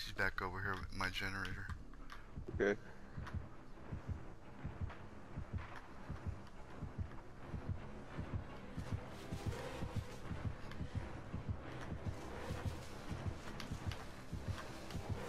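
Footsteps shuffle softly through rustling dry cornstalks.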